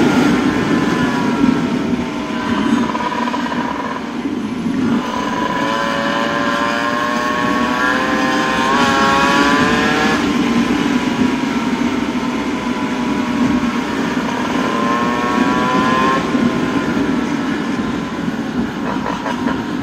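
Skateboard wheels roll and rumble steadily on asphalt.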